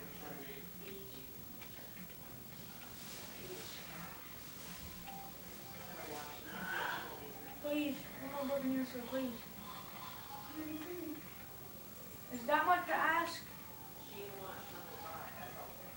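A television plays voices and sounds through its small speaker.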